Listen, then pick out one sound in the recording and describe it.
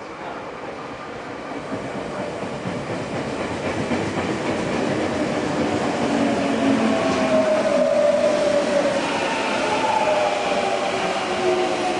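A train rolls in, growing steadily louder and rumbling.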